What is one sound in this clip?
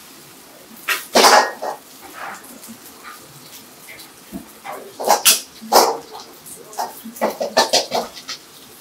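A metal ladle clanks and scrapes against a wok.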